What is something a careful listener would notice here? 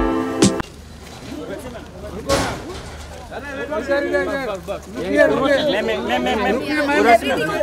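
Several women chat with animation close by outdoors.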